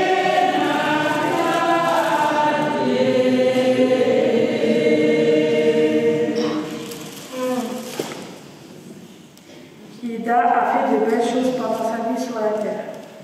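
A woman sings slowly into a microphone in an echoing hall.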